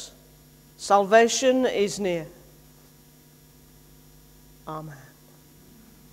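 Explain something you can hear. An older man speaks slowly and solemnly through a microphone in an echoing hall.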